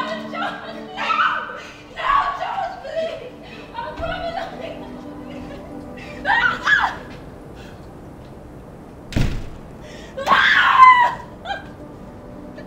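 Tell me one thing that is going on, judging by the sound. A young woman cries out and screams in distress close by.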